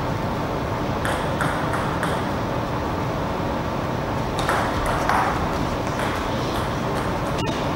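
A table tennis ball clicks back and forth between paddles and table.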